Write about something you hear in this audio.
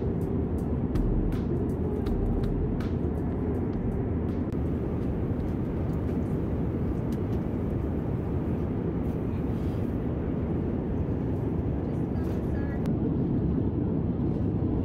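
A plane's engines roar steadily in the cabin.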